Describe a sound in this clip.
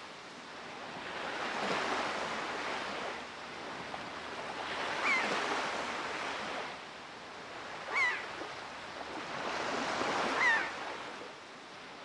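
Waves wash and splash against a wooden boat.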